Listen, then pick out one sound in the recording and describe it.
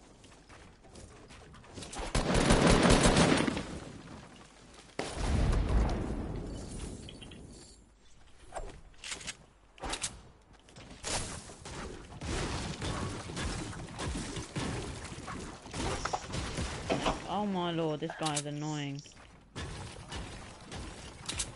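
Wooden walls snap quickly into place in a video game.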